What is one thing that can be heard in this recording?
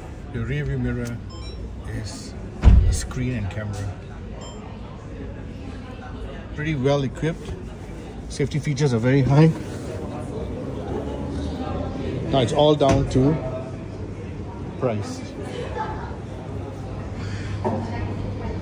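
Men talk nearby in a busy, echoing hall.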